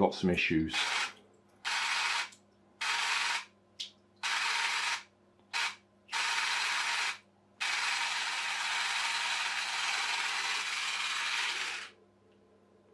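A clockwork toy boat motor whirs in short bursts.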